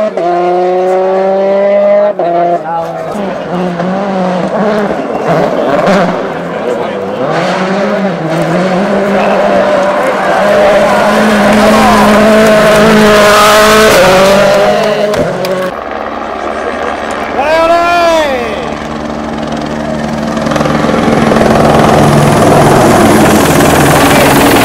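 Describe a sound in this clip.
A rally car engine roars and revs hard at high speed.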